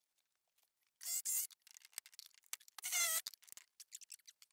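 A power tool whines in short bursts.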